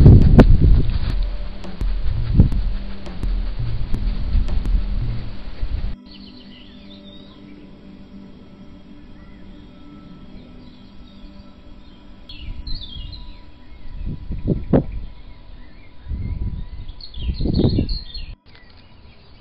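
A small animal rustles through dry leaves close by.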